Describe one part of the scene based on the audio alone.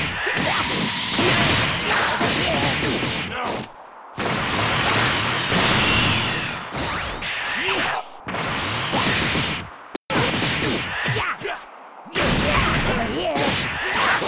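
Punches and blows thud and crack in quick bursts.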